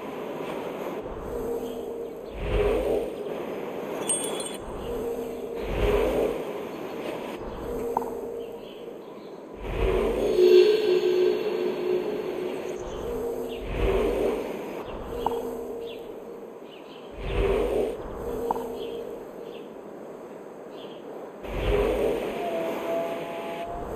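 A large bird's wings beat in heavy, whooshing gusts every few seconds.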